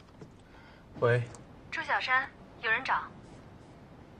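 A young man speaks calmly into a phone.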